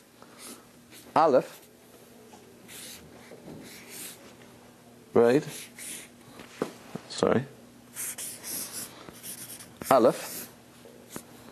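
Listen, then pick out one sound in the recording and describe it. A marker squeaks and scratches on paper.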